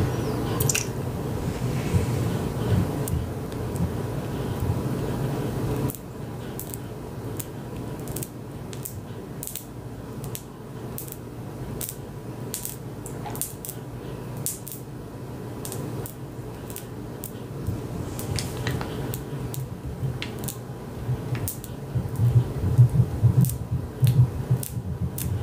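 Hard candy coating cracks and crunches close up.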